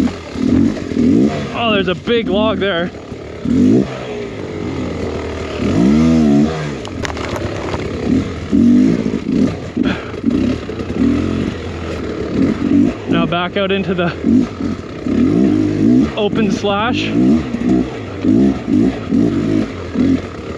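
A dirt bike engine revs and sputters up close, rising and falling in pitch.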